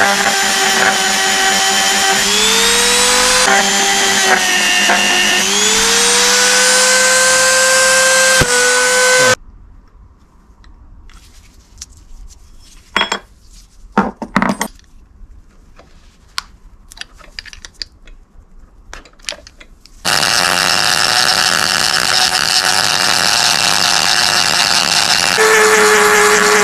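A small rotary tool whines loudly at high speed, its pitch shifting up and down.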